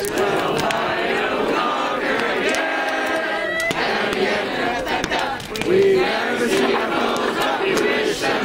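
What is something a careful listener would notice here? A group of young people sing together outdoors.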